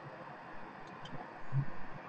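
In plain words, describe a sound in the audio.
Small parts click softly as a hand handles them.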